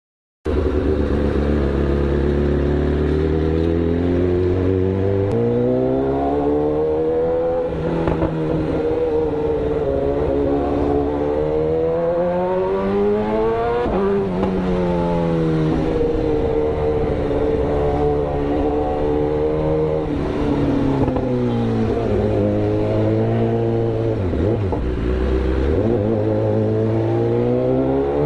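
An inline-four sport bike engine revs up and down.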